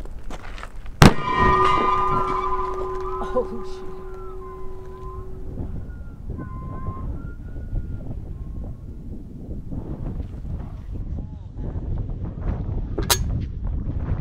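A cannon fires with a loud, sharp boom.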